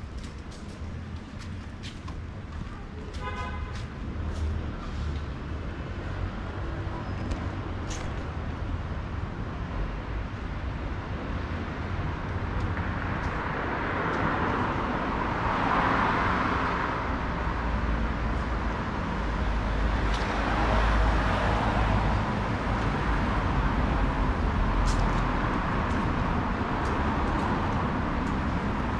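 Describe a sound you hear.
Traffic rumbles steadily nearby, swelling as cars pass.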